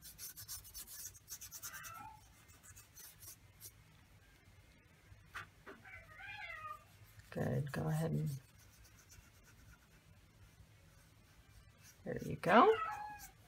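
A brush dabs and strokes softly on paper.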